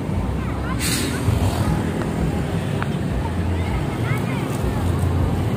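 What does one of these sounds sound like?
Children and adults chatter outdoors.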